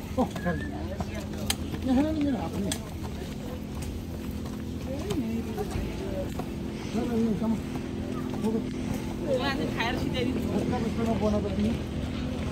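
Footsteps scuff on stone steps outdoors.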